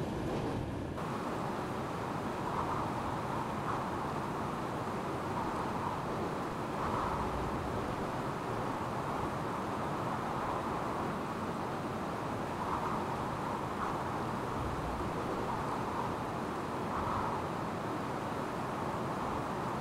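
A train rumbles steadily along the rails, heard from inside the cab.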